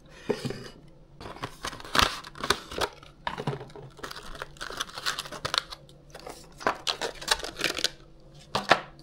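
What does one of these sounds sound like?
Plastic packaging rustles and crinkles as a box is opened.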